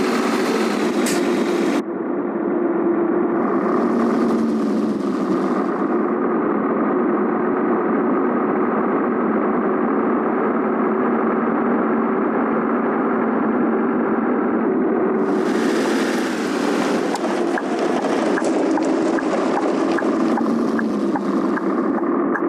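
A truck's diesel engine rumbles steadily as it drives.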